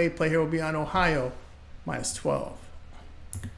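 A man speaks with animation close to a microphone.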